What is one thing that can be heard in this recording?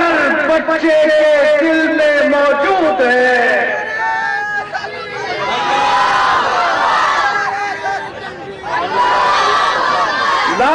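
A middle-aged man speaks forcefully into a microphone, his voice carried over loudspeakers outdoors.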